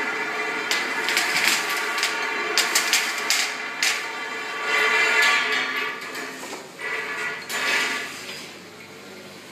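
A filling machine hums and whirs steadily nearby.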